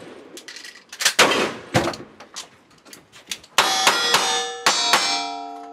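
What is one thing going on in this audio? Gunshots crack loudly outdoors, one after another.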